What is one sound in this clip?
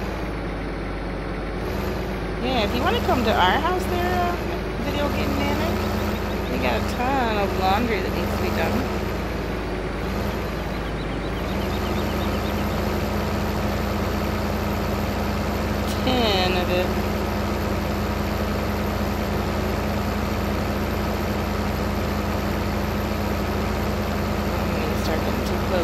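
A combine harvester's engine drones steadily.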